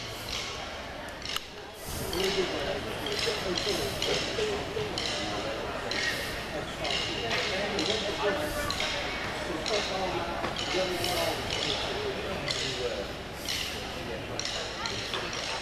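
Cymbals crash to a steady beat.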